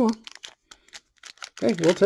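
A foil card pack crinkles as hands handle it.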